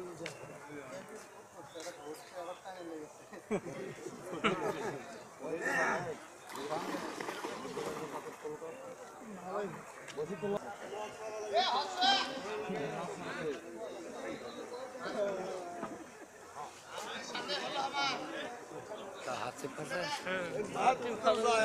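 A crowd of men chatter and call out nearby, outdoors.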